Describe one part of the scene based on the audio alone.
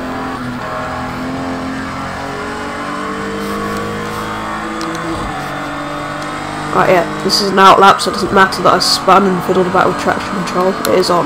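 A racing car engine roars steadily, its pitch rising as it speeds up.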